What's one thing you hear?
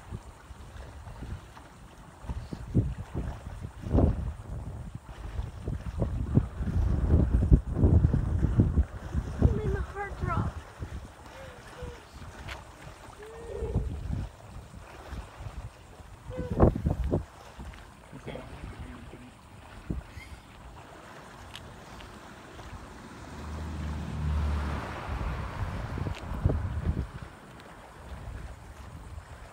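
Water ripples softly as an animal swims.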